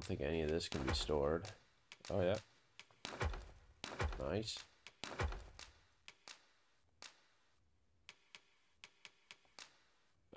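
Short soft menu clicks tick as a selection cursor moves.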